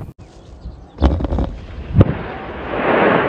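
A huge explosion booms and rumbles as a building collapses.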